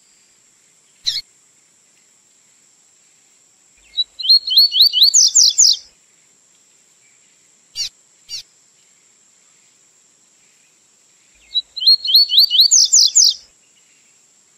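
A small songbird sings close by in quick, sweet trills.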